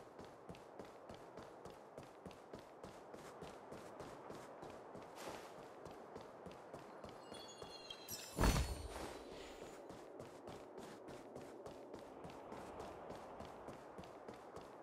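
Quick footsteps run steadily on stone pavement.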